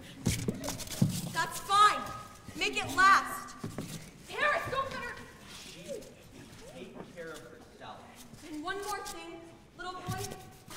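Young women cry out and speak with emotion in a large hall.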